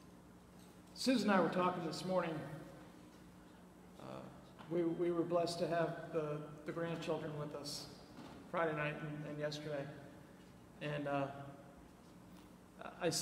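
A middle-aged man preaches with animation into a microphone, heard in an echoing hall.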